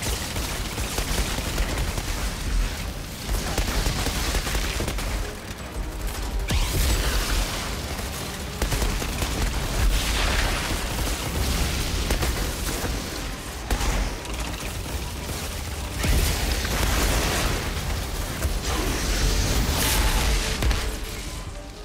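Flames roar and crackle in bursts.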